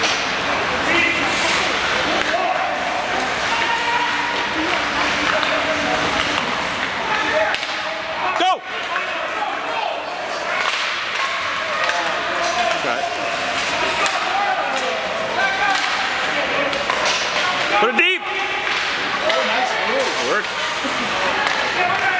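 A crowd of spectators chatters in a large echoing arena.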